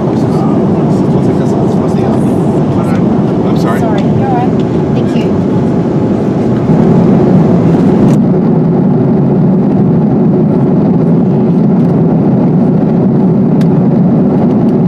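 A jet airliner's engines roar steadily inside the cabin.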